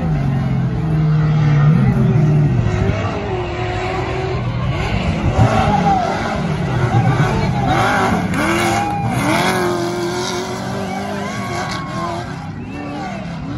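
A trophy truck engine roars at full throttle through a dirt turn.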